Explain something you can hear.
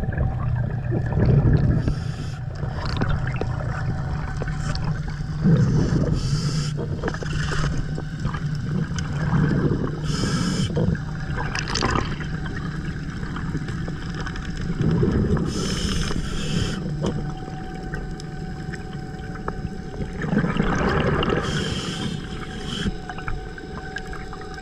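Water rumbles steadily and dully underwater.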